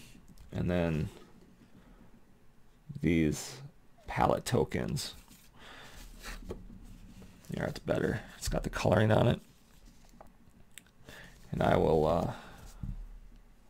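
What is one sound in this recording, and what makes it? A stiff cardboard sheet rustles and flexes as hands handle it.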